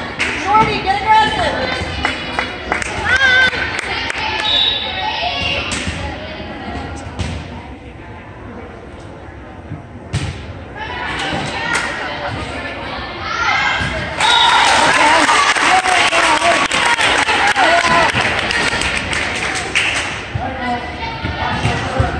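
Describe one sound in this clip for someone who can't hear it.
Women in the crowd nearby chat and call out with animation.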